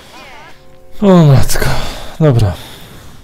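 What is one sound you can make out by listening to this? A man groans loudly and close into a microphone.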